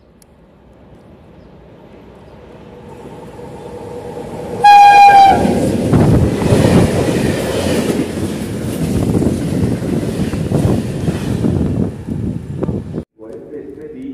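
A freight train approaches and rumbles loudly past on the tracks.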